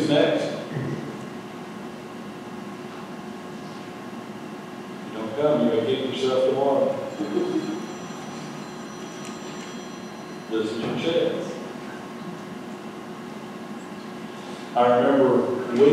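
A man speaks slowly and calmly through a microphone, with pauses, in an echoing hall.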